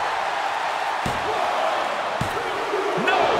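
A hand slaps a mat several times.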